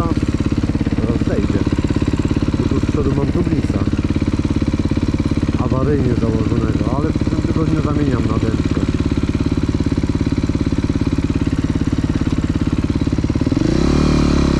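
A dirt bike engine idles with a steady beat.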